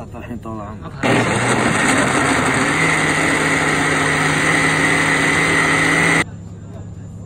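A blender whirs loudly, churning liquid.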